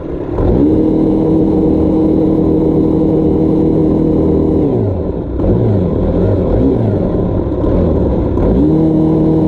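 A roller rumbles over grass.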